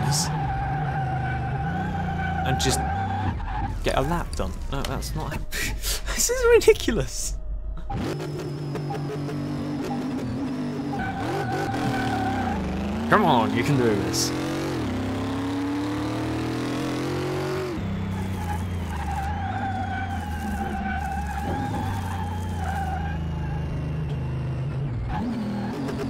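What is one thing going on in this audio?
A truck engine hums and roars, rising in pitch as it speeds up.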